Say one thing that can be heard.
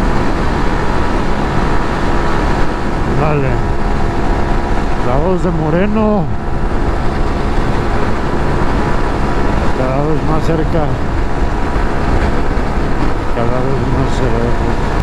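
Wind rushes loudly past at speed.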